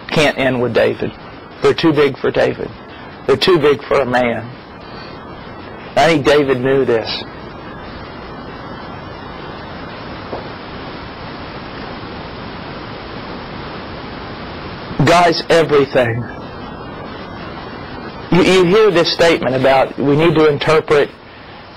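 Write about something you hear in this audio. A middle-aged man speaks calmly into a clip-on microphone, close by.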